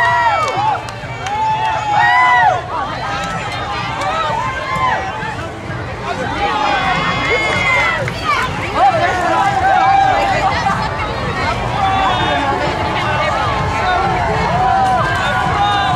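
Many people chatter nearby.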